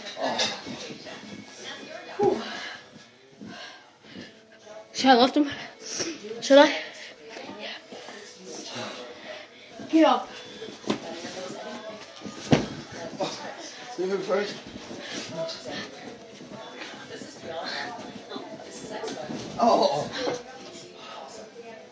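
A boy talks and shouts with excitement close by.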